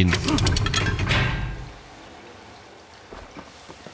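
A metal lever clanks as it is pulled.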